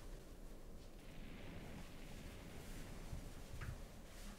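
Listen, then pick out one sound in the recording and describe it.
Clothing rustles as a man pulls on a sweater.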